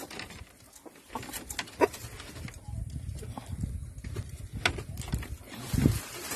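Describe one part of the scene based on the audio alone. Wooden slats knock and rattle under a hand.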